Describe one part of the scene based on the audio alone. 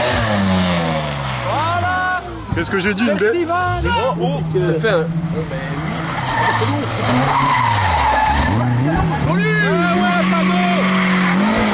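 Gravel and mud spray from spinning tyres.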